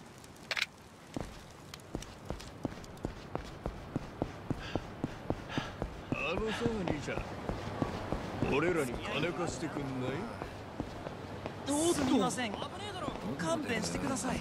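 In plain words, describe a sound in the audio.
Footsteps patter quickly on hard ground as a man runs.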